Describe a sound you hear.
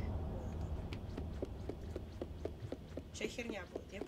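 Small footsteps patter on wooden floorboards.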